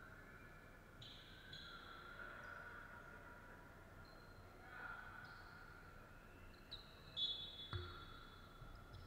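Sneakers squeak on a hard floor in a large echoing hall.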